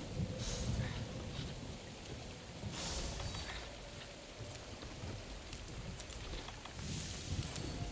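Blades slash and clang in a fight.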